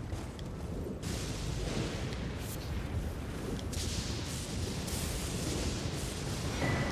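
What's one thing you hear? A horse gallops with heavy, rapid hoofbeats.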